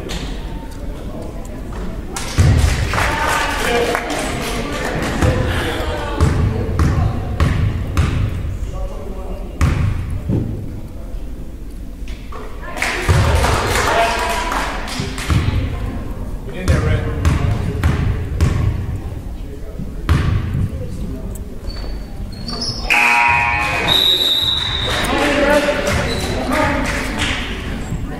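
Young players shout and call to each other in a large echoing gym.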